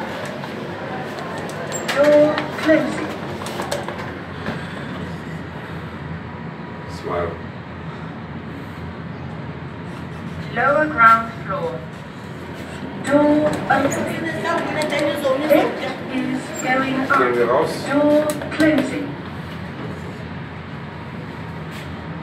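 An elevator car hums steadily as it moves.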